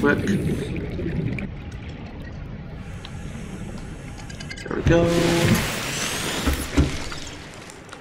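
Water rushes and bubbles underwater.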